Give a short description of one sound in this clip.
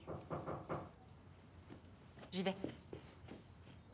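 A girl speaks calmly nearby.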